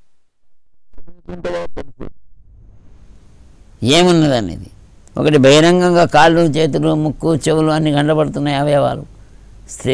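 An elderly man sings a long, slow chant into a microphone.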